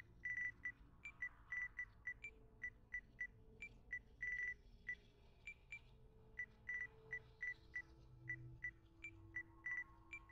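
Short electronic menu beeps sound again and again.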